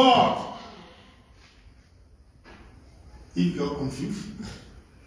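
A man speaks with animation in a room with a slight echo.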